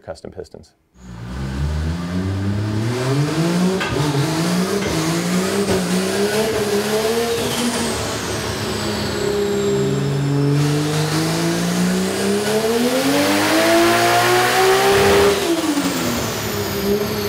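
A car engine revs up and down repeatedly, loud in an echoing room.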